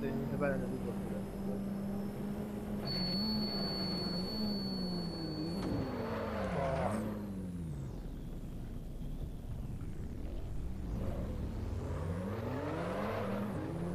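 A racing car engine revs hard, rising and falling in pitch as the gears shift.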